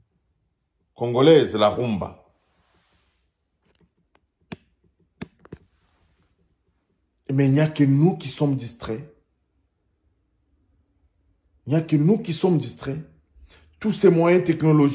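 A man speaks close up with animation, in short bursts with pauses.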